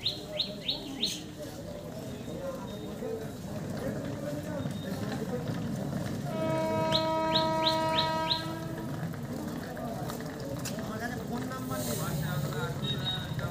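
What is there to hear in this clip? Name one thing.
Men and women chatter nearby outdoors.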